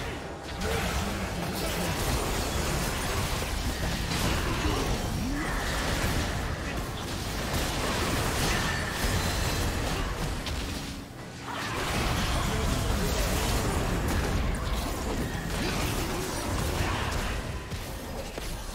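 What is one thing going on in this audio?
Magic blasts and weapon strikes clash in a busy fight.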